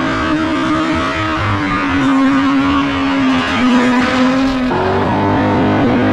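Tyres screech on asphalt.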